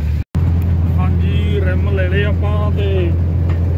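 A young man sings close by.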